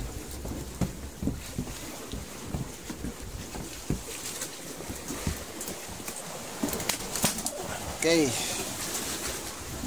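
A heavy fish thumps and scrapes across a wooden boat deck.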